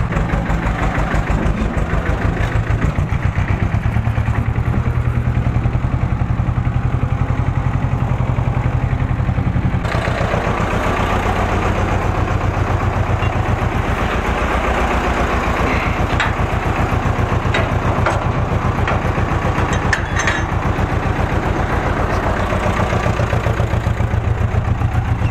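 A tractor's diesel engine chugs loudly and steadily close by.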